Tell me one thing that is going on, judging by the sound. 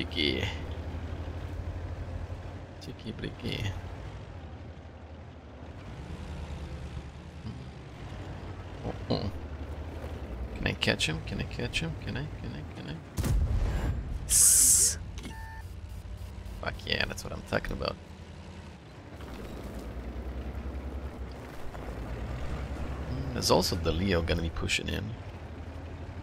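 A man talks close to a microphone.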